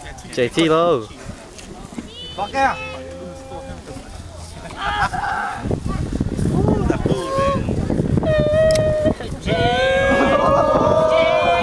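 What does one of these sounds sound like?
Young men talk and shout excitedly nearby, outdoors.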